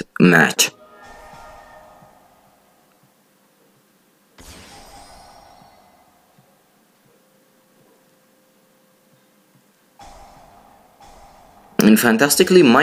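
A short electronic chime rings out and slowly fades.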